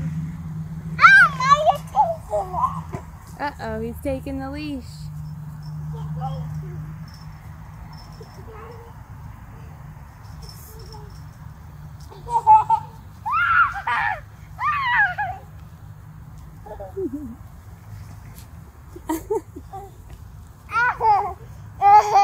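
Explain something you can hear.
A young child squeals and babbles excitedly nearby.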